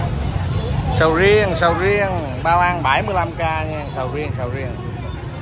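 A woman speaks loudly and animatedly close by.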